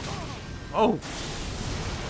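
A magic spell crackles and whooshes through the air.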